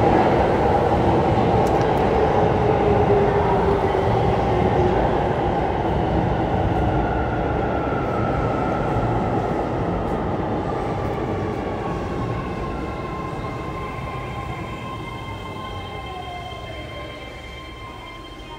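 A train's electric motor whines and falls in pitch as it brakes.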